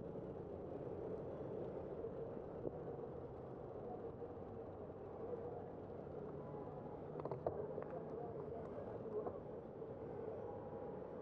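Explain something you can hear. A car's engine drones as the car drives along.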